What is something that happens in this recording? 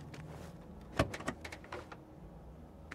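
A car boot lid thumps and creaks open.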